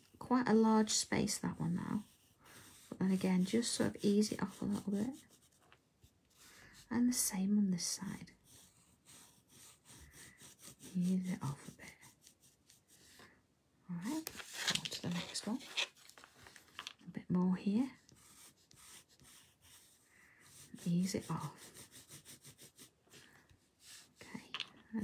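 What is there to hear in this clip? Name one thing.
A pencil scratches softly on paper.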